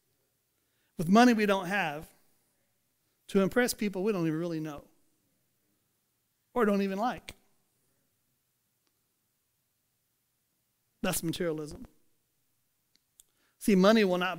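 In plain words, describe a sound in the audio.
A middle-aged man speaks calmly through a headset microphone, pausing between phrases.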